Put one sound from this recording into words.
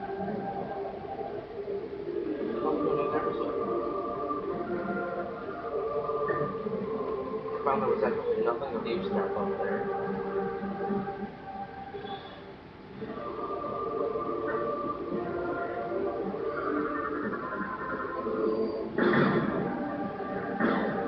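Electronic game music plays through a television speaker.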